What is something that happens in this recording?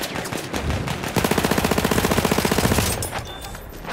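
A rifle fires rapid shots close by.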